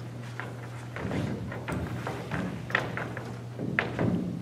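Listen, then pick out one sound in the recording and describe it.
Children's bare feet thud and shuffle on a wooden stage.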